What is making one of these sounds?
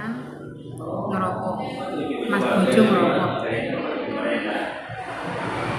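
A young woman talks casually up close.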